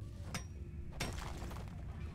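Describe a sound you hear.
Chunks of rock crumble and clatter down.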